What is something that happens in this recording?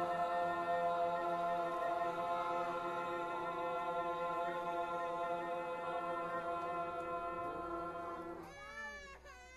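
A choir sings a long, held chord.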